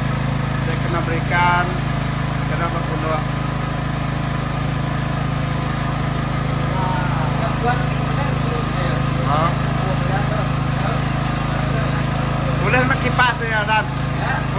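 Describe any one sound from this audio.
A second man answers nearby.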